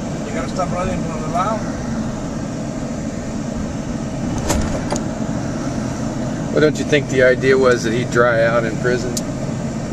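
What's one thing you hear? A car engine hums and tyres rumble on the road from inside a moving car.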